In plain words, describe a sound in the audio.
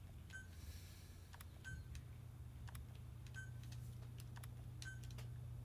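Short electronic menu beeps sound repeatedly.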